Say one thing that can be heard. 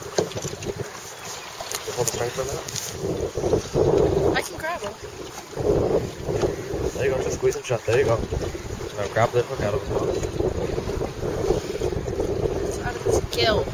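Wind rushes past outdoors on open water.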